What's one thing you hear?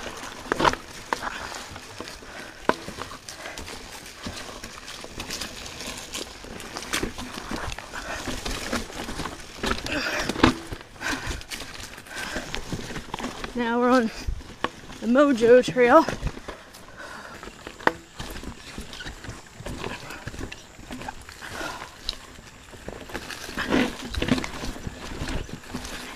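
Bicycle tyres crunch over a dirt and rocky trail.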